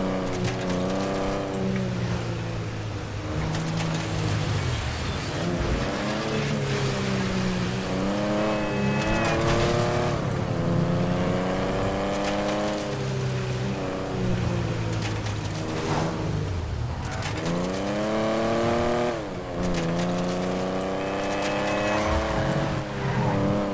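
A car engine revs up and down as the car speeds along a road.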